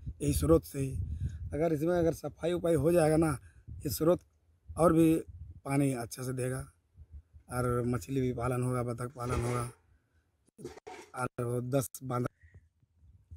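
A man speaks calmly into close microphones.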